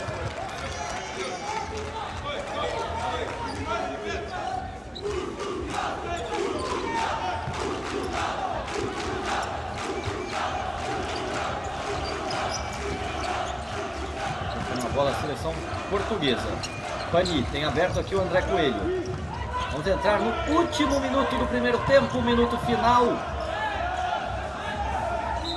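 A crowd murmurs and cheers in a large indoor arena.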